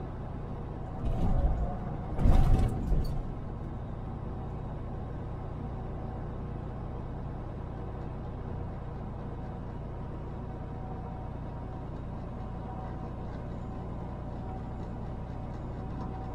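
Tyres roll on the road with a steady rush.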